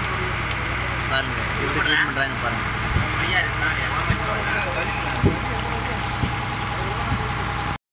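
Hands crack and pull apart cooked crab shells.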